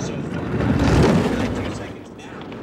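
A bobsled whooshes past close by.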